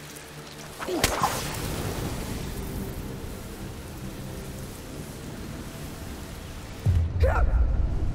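Flames roar and crackle steadily.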